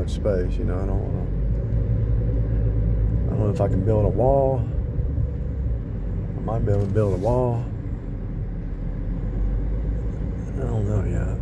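A car engine hums steadily with low road rumble from inside the car.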